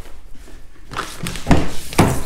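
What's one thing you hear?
A car door handle clicks as it is pulled.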